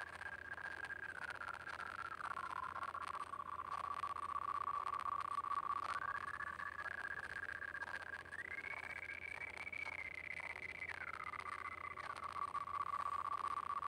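Light electronic game music plays with a bouncy melody that shifts between high and higher notes.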